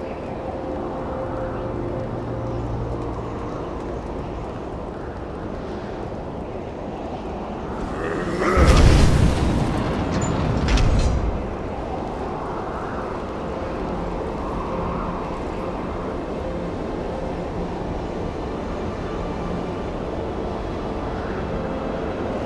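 Wind and rain roar steadily outdoors.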